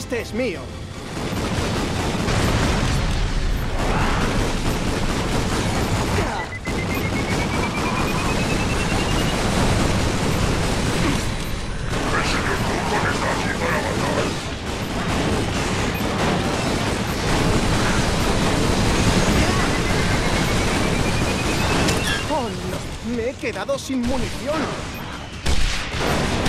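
Guns fire rapidly in a video game.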